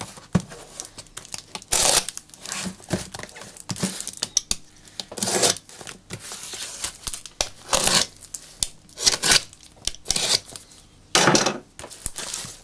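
A utility knife slices through plastic tape on a cardboard box.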